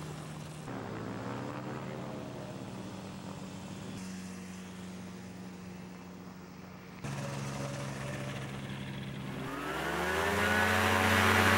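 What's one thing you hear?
Small aircraft engines drone steadily as microlights taxi by.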